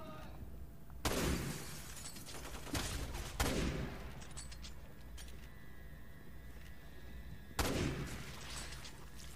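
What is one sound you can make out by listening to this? Rifle shots ring out loudly, echoing in a large hall.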